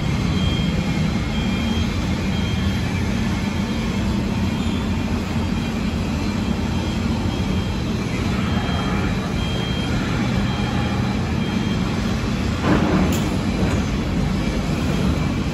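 A metro train rumbles on its rails, heard from inside the carriage.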